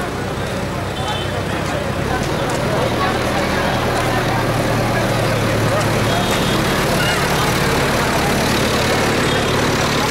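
A diesel engine rumbles nearby.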